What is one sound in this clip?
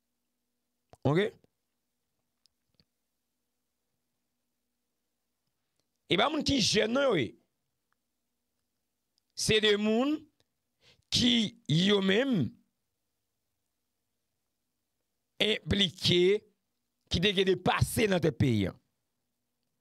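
A man speaks with animation into a close microphone, in short bursts with long pauses.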